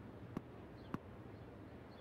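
A tennis ball bounces on the ground a few times.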